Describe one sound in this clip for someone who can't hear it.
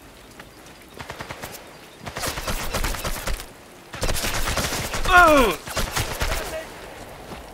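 Gunfire bursts out loudly in rapid shots.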